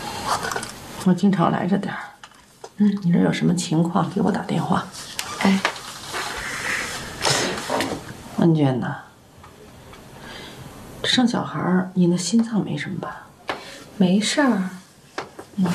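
A middle-aged woman speaks gently and close by.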